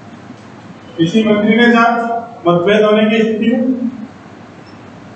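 A middle-aged man speaks loudly in a calm lecturing tone, close by.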